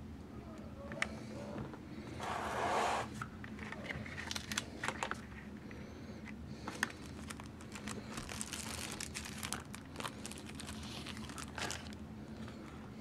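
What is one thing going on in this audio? Cardboard and paper rustle as a box is unpacked.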